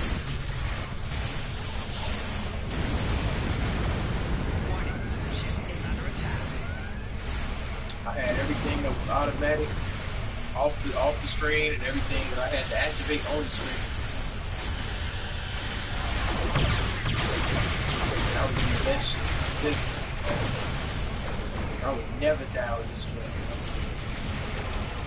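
Spaceship engines rumble low and steadily.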